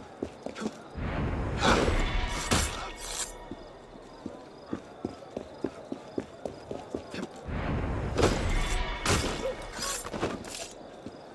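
A blade strikes with a sharp ring.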